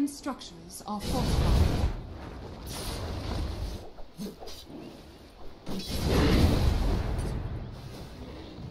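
Magic blasts boom and crackle in a fight.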